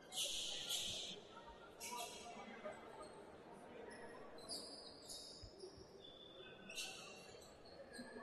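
Sound echoes around a large indoor hall.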